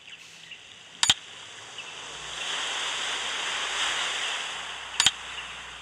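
A mechanical dial clicks sharply as it turns.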